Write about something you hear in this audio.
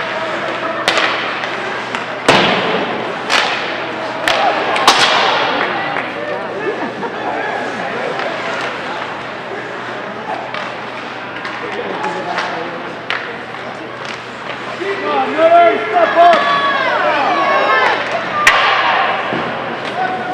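A crowd of spectators chatters in an echoing ice rink.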